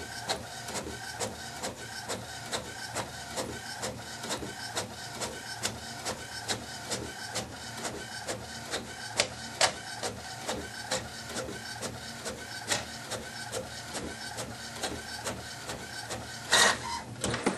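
A printer whirs and clicks rhythmically as it prints a page.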